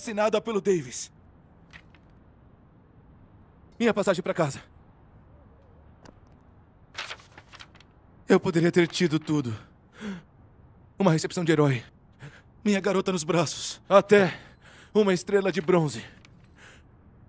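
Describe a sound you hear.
A young man speaks calmly and close by, in short phrases.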